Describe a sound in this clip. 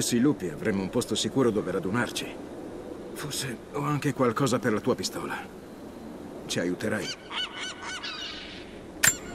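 A man speaks in a low, weary voice close by.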